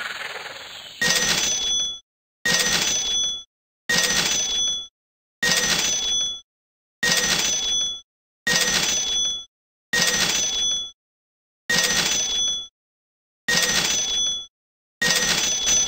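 A bright game chime rings out again and again at a steady pace.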